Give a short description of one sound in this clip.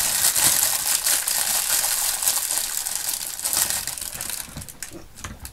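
A plastic bag rustles and crinkles close by.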